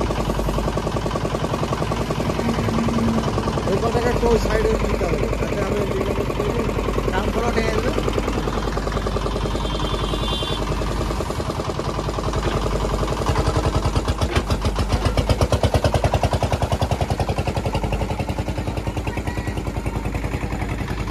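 A diesel engine rumbles and chugs steadily close by.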